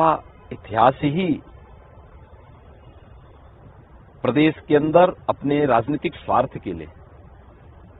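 A middle-aged man speaks calmly and firmly into a close microphone, in short bursts with pauses.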